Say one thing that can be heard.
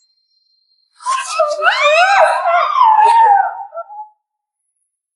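A young woman cries out in muffled whimpers.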